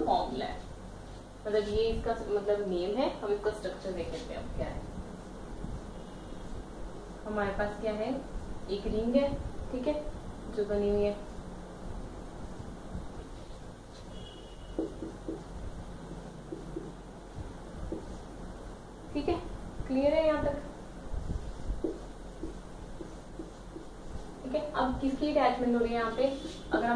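A young woman speaks calmly and explains nearby.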